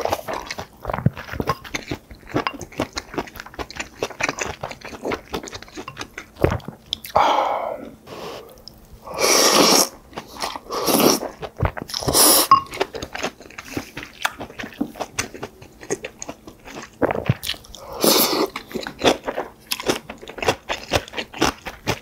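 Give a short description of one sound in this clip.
Chopsticks and a spoon clink against a bowl.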